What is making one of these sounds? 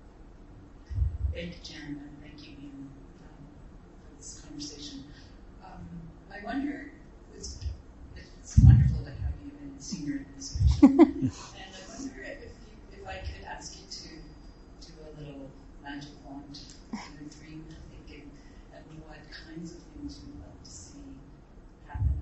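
An elderly woman speaks calmly, close by.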